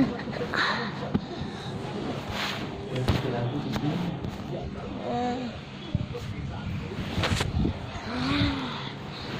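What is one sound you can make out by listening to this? A young child babbles and coos close by.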